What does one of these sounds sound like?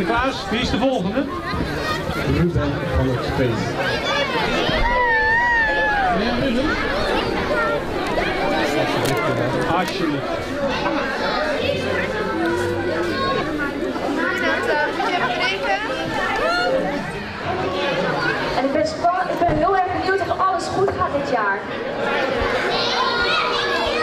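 A large crowd of young children chatters and shouts nearby.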